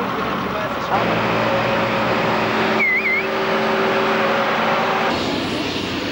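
A tractor engine roars loudly nearby.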